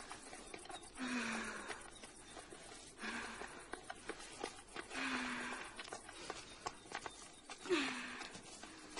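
Women cry out breathlessly in short bursts nearby.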